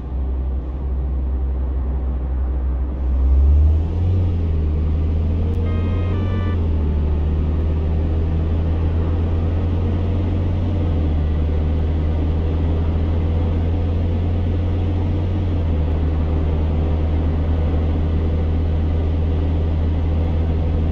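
A car engine hums steadily and rises in pitch as the car speeds up.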